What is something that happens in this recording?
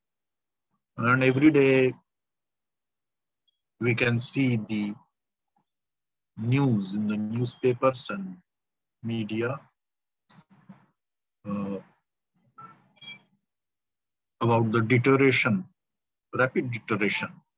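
An elderly man speaks calmly in short phrases with pauses, heard through an online call.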